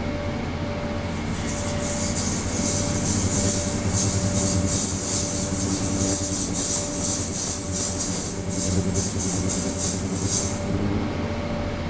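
An ultrasonic cleaning tank hisses and crackles loudly in water.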